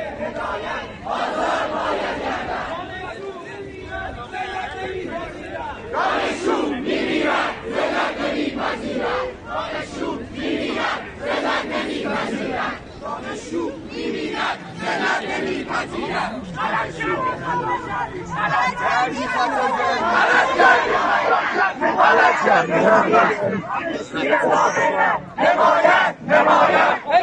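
A large crowd of young men and women chants loudly outdoors.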